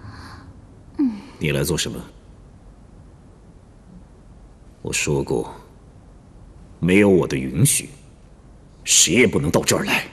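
A man speaks sternly and close by.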